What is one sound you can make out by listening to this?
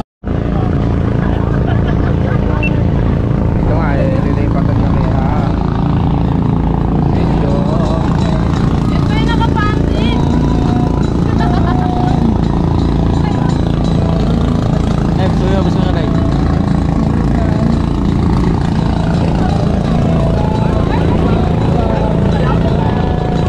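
Men and women chat and call out over the engine, close by.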